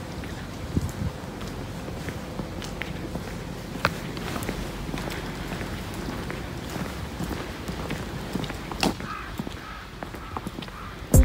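Sleet patters lightly and steadily on the ground outdoors.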